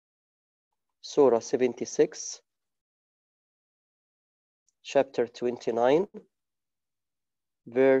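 A man speaks calmly and close, heard through a microphone, with pauses.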